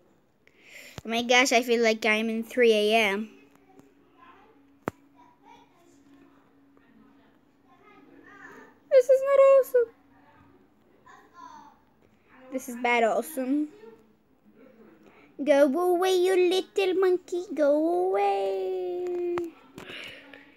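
A young girl speaks with animation close to a phone microphone, in short bursts.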